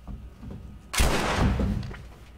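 A gunshot bangs loudly.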